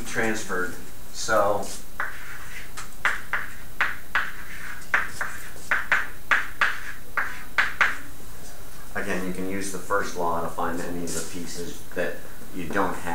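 An elderly man speaks calmly, lecturing.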